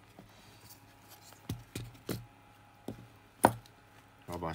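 A circuit board is set down on a hard surface with a light tap.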